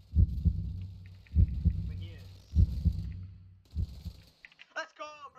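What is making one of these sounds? Gunshots fire in loud, booming bursts.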